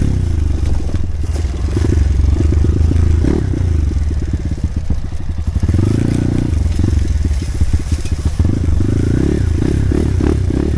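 A dirt bike engine revs and sputters up close, rising and falling.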